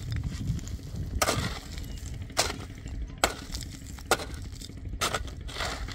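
A shovel scrapes through loose stones and dirt.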